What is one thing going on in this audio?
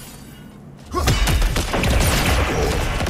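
A wall of ice shatters with a loud crash.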